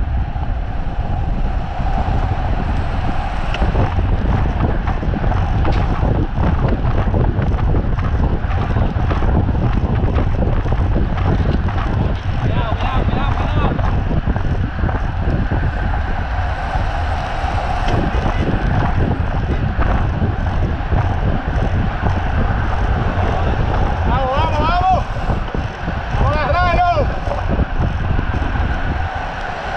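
Wind rushes loudly past a moving cyclist.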